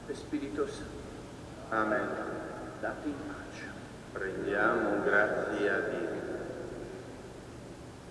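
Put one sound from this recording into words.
An elderly man speaks calmly into a microphone, echoing in a large hall.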